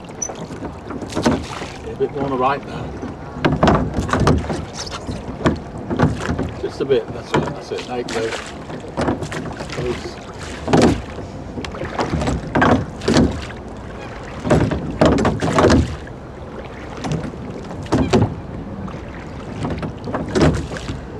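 Oars splash and knock in the water with a steady rowing rhythm.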